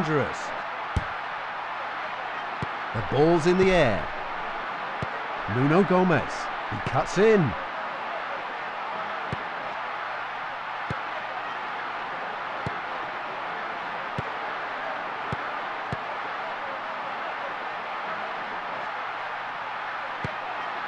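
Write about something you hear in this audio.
A football is kicked with short thuds again and again.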